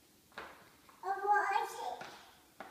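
A toddler girl babbles in a high voice close by.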